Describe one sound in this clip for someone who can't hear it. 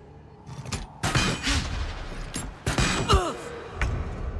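A magic spell bursts with a loud whoosh and crackle.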